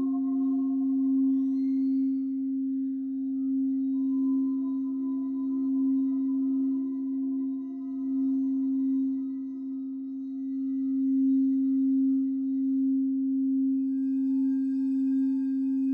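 A crystal singing bowl is rubbed around its rim with a mallet, ringing with a steady, pulsing hum.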